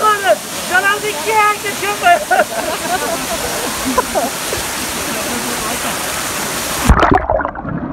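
A waterfall splashes loudly into a pool.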